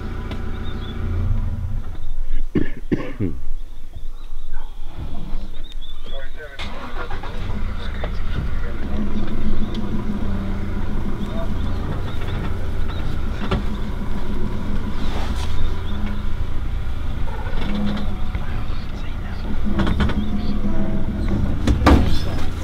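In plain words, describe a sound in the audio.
A vehicle engine rumbles low and steadily nearby.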